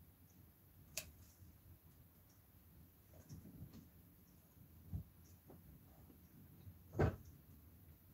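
A paintbrush taps lightly against a jar and a table now and then.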